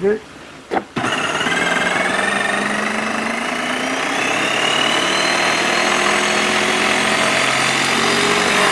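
A paint sprayer hisses loudly as it sprays liquid, with a whirring pump.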